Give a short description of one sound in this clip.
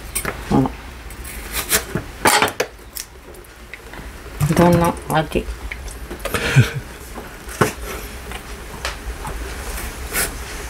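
A knife chops through vegetables on a cutting board.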